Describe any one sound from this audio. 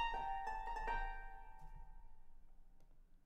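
Piano notes ring out and slowly fade.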